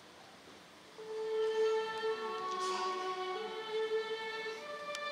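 An orchestra begins playing, with strings sounding in a large hall.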